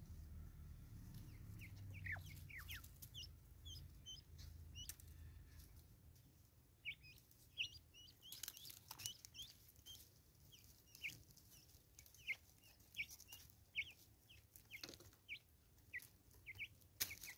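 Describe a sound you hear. A bird pecks at seeds with quick, light taps.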